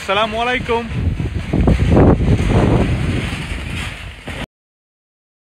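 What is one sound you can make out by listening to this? Wind blows into the microphone outdoors.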